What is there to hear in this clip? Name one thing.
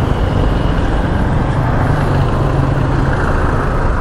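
A jeepney engine rumbles nearby as it passes.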